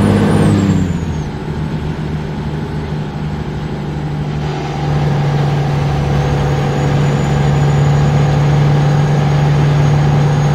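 A truck engine hums low and steady as the truck rolls on.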